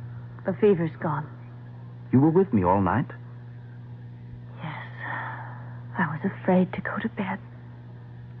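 A voice plays through an old radio, thin and muffled.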